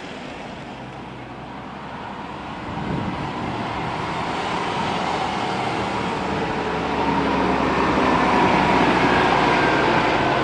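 A bus engine rumbles loudly as it approaches and passes close by.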